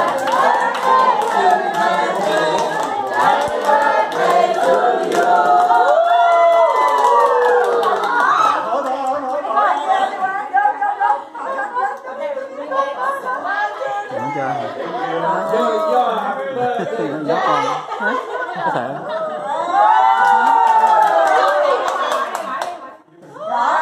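A crowd of men, women and children sings together loudly in a room.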